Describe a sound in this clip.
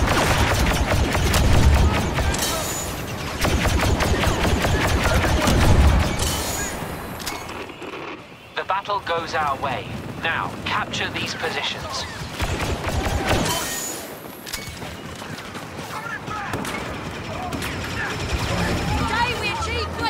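Blasters fire in rapid bursts.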